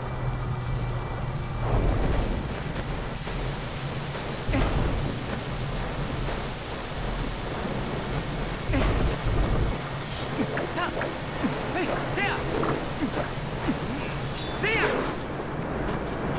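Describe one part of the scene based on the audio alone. A swarm of small insects skitters and chitters nearby.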